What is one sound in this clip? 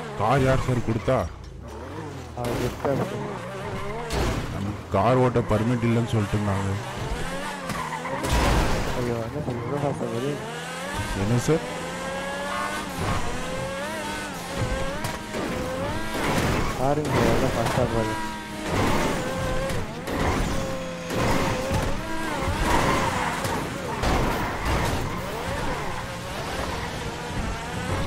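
A sports car engine revs and roars as the car speeds up and slows down.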